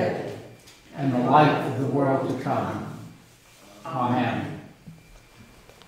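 An elderly man speaks calmly and clearly, close to a microphone.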